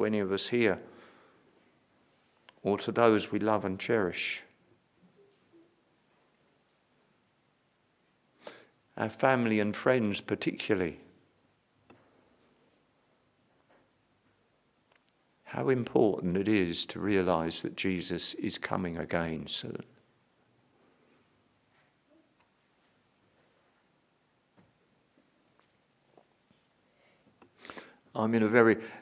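An elderly man speaks calmly and slowly into a microphone, with long pauses.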